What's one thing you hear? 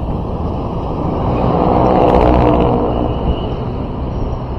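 A motorcycle engine buzzes past close by, rising and fading.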